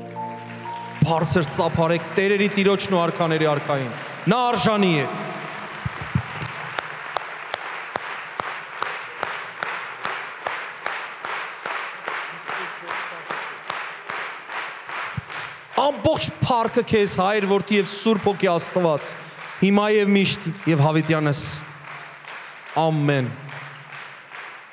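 A man sings into a microphone through loudspeakers in a large hall.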